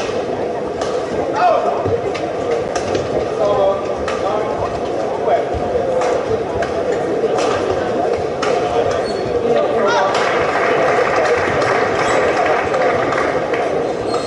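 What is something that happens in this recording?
Rackets strike a shuttlecock back and forth in a sharp rally.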